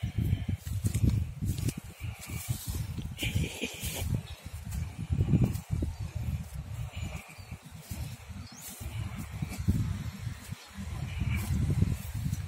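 Dry rice stalks rustle and crunch underfoot as someone walks through them.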